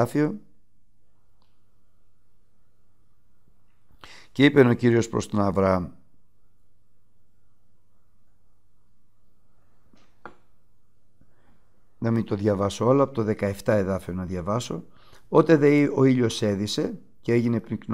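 A middle-aged man reads aloud calmly and closely into a microphone, with pauses.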